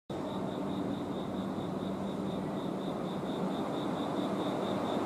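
A stopped electric train hums steadily.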